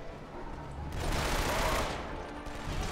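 An assault rifle fires in bursts.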